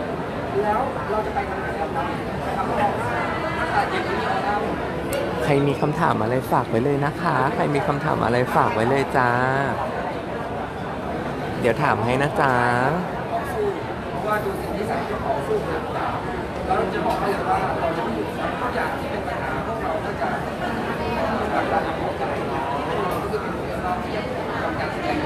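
A crowd of people chatters in an echoing hall.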